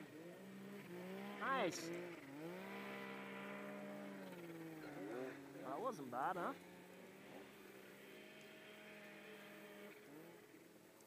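A snowmobile engine idles with a steady hum.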